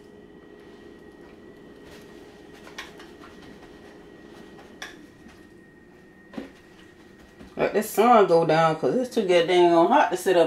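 Water bubbles and simmers softly in a pot.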